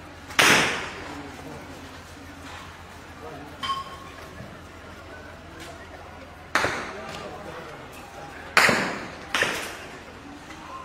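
Sharp bangs ring out outdoors and echo.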